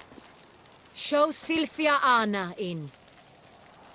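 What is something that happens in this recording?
A young woman speaks loudly and formally, as if announcing.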